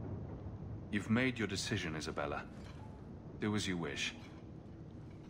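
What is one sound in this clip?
A man speaks calmly and firmly.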